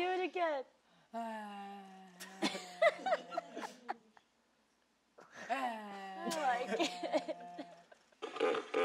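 A young woman sings long, wavering vocal sounds up close, with pauses between them.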